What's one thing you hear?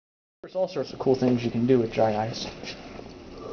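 A man speaks briefly and animatedly up close.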